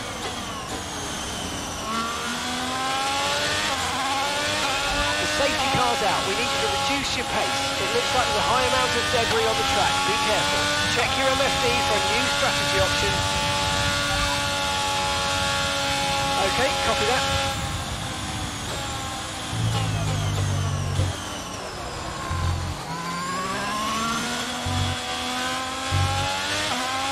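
A racing car engine screams, climbing in pitch through the gears and then dropping as the car slows.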